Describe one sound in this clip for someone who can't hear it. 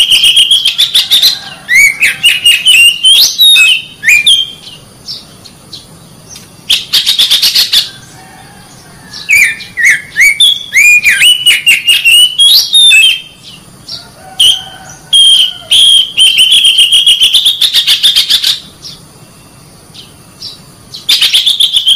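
A bird sings loud, varied whistling phrases close by.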